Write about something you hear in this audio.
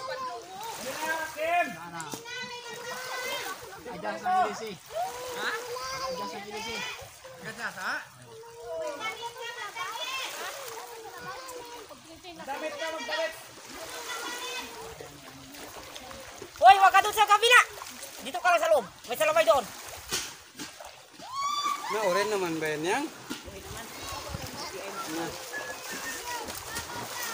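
Children shout and laugh while playing in the water.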